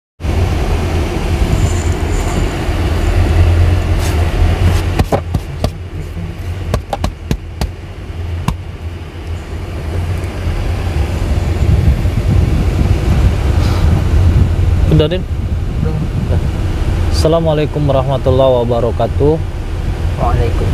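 A car engine rumbles low and steady inside the cabin.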